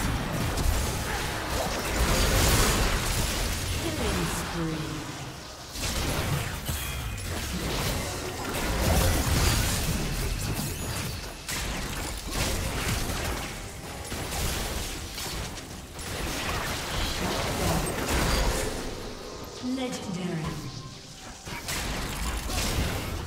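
Sharp hits and impacts clatter during a game fight.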